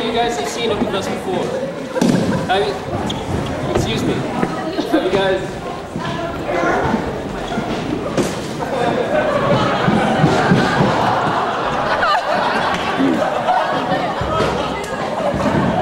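An audience of young people chatters and laughs.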